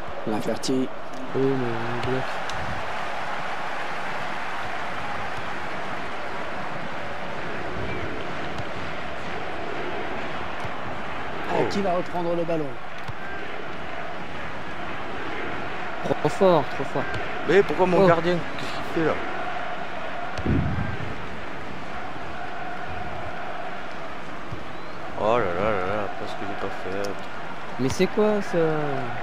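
A large stadium crowd murmurs and roars in the background.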